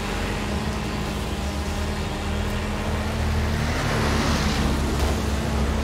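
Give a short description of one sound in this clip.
A car engine roars at high revs as the car speeds up.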